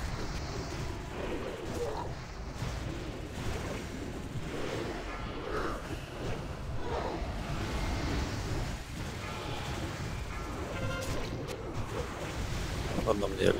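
Magic spells crackle and whoosh amid a busy battle.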